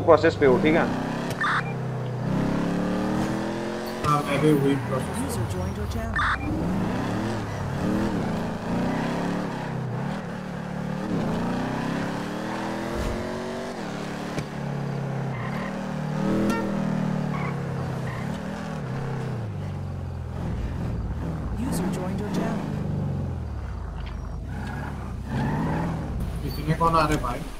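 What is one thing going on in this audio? A car engine hums and revs as a car drives along a road.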